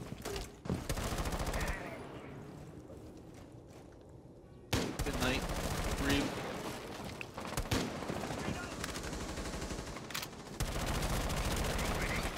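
A rifle fires in sharp, repeated shots.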